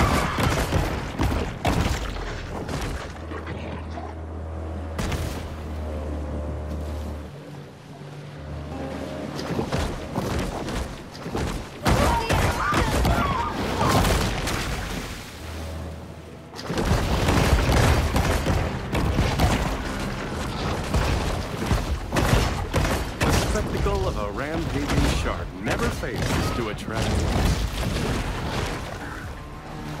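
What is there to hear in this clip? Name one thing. Water splashes and churns as a shark swims.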